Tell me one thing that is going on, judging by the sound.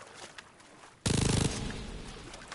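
A mounted machine gun fires a loud burst.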